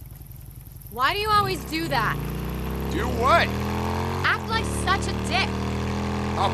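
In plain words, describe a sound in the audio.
A motorcycle engine rumbles steadily.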